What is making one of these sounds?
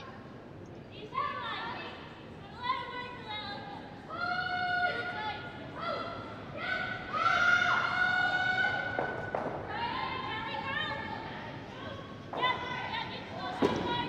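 Young women shout loudly across an echoing ice rink.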